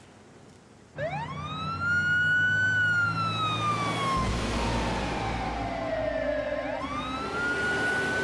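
A siren wails, rising and falling in pitch.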